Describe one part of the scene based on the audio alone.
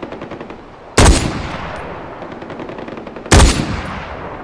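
A rifle fires two loud shots that echo away.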